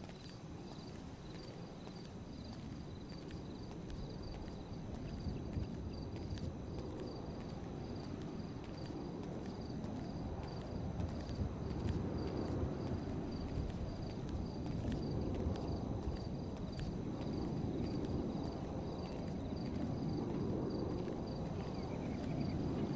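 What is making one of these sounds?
Footsteps pad steadily on pavement.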